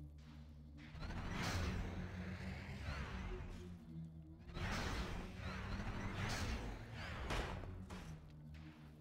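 A spacecraft rushes past with a swelling whoosh.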